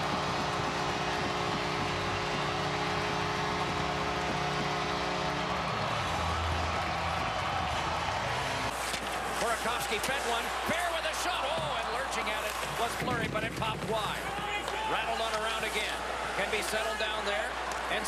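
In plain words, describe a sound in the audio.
A large crowd cheers loudly in an echoing arena.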